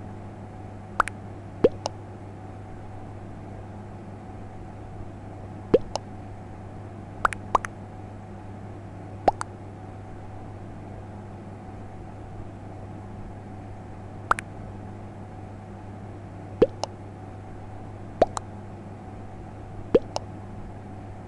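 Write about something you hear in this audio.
A game's chat notification gives short rising chirps as messages arrive.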